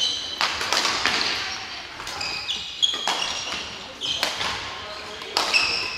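Badminton rackets smack a shuttlecock in a large echoing hall.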